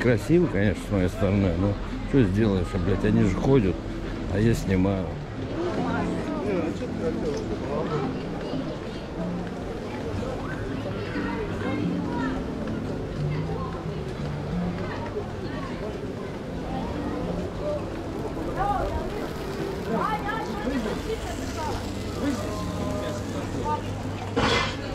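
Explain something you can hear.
A crowd of adults chatters nearby outdoors.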